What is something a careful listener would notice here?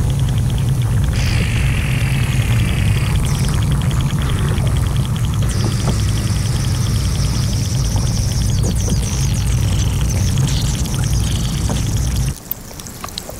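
Water bubbles and rumbles, heard from underwater.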